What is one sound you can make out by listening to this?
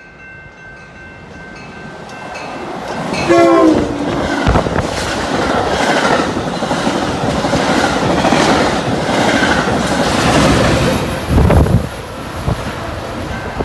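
A train approaches and roars past close by.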